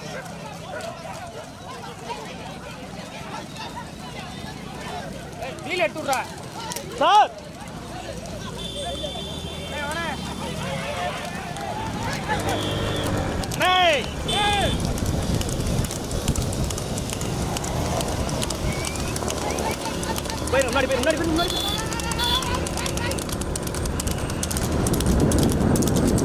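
Horse hooves clatter on a road.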